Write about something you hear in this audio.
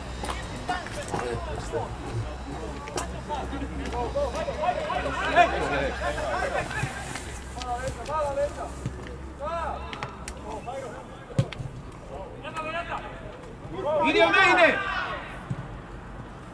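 Men shout to each other across an open outdoor field.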